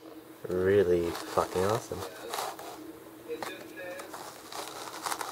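A metal dart clicks softly as it is lifted from a foam case.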